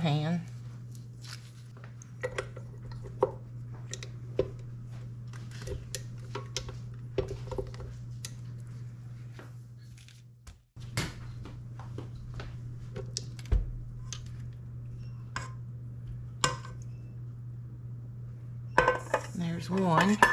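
Metal clicks and clinks as a beater is fitted onto a stand mixer.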